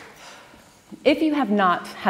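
A woman speaks to an audience through a microphone in a large hall.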